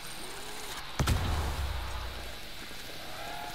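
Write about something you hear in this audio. A heavy blast booms and rumbles away.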